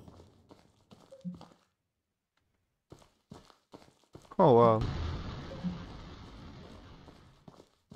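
Distant explosions boom.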